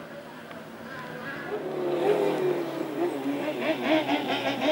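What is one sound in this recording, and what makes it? Another rally car engine revs loudly as it approaches.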